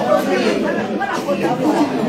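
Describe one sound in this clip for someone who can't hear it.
A woman shouts with animation close by.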